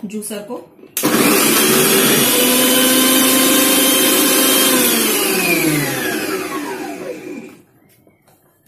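A food processor motor whirs loudly, then winds down.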